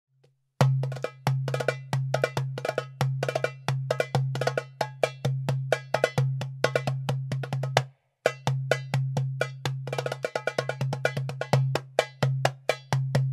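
Hands play a goblet drum in a quick, driving rhythm of deep booming strokes and sharp ringing taps.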